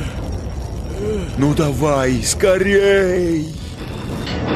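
A deep, electronically processed male voice speaks close up.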